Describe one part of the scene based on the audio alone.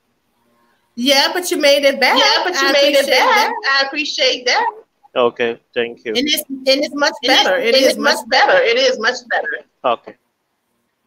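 A middle-aged woman talks animatedly over an online call.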